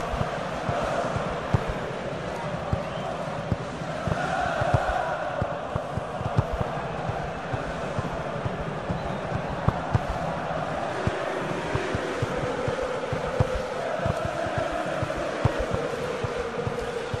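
A football is kicked again and again with dull thuds.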